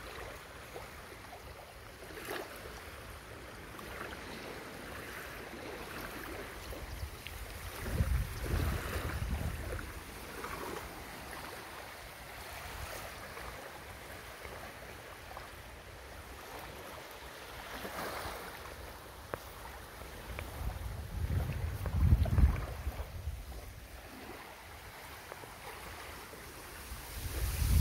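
Wind gusts across an open shore, rumbling over the microphone.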